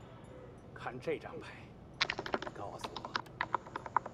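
A game tile clicks against a wooden table.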